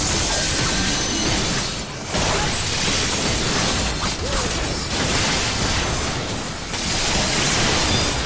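Heavy blows and magic blasts crash repeatedly.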